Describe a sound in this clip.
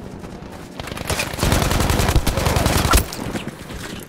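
Loud gunfire crackles in rapid bursts.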